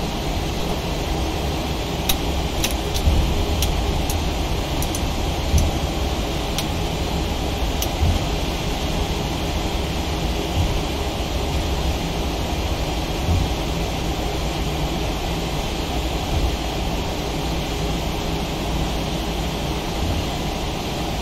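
A jet airliner's engines hum steadily while it taxis.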